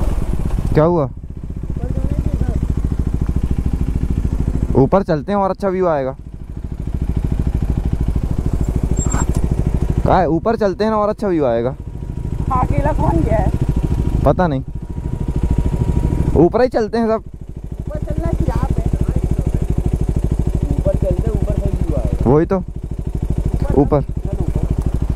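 A motorcycle engine revs sharply in short bursts, again and again.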